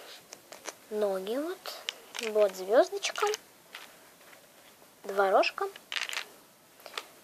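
A young child speaks close by in a high, sing-song voice.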